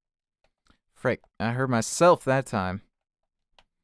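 A man speaks briefly and animatedly, close to a microphone.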